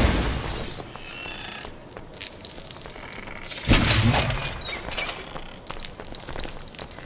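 Coins clink and jingle as they scatter.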